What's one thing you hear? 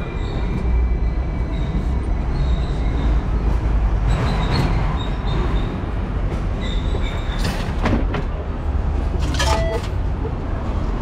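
A tram rumbles and rattles along.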